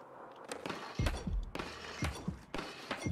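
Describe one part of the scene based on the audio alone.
A skateboard grinds along a metal rail.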